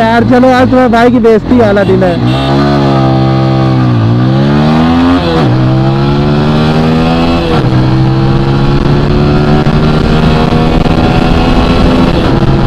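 A single-cylinder motorcycle accelerates hard through the gears, its engine note climbing and dropping at each upshift.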